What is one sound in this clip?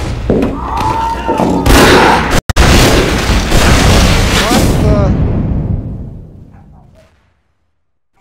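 Loud gunfire and explosions crash in bursts, then fade away.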